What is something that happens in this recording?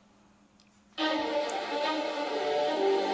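Game music plays from a small handheld speaker.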